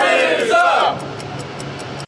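A group of men shout together loudly and cheer.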